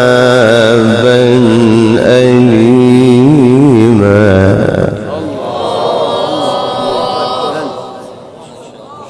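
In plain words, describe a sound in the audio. A young man chants loudly and melodically into a microphone, his voice echoing.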